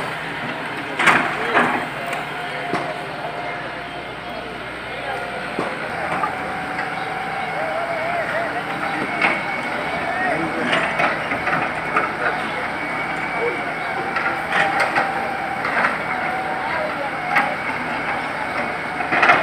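Rubble and concrete crash and clatter as an excavator digs.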